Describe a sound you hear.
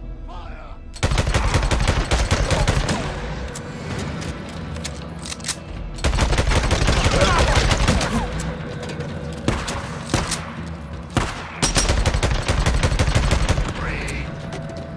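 A rifle fires in rapid bursts of loud, sharp shots.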